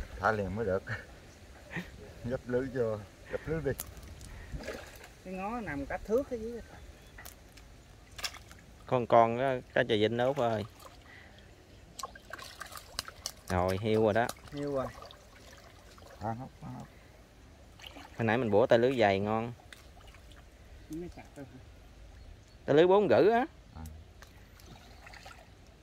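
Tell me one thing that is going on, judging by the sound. Water sloshes around a man wading.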